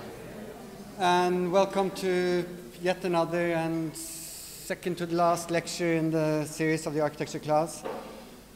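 A man speaks calmly through a microphone in a room with some echo.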